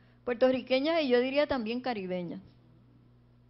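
A woman speaks with feeling into a microphone, heard through loudspeakers.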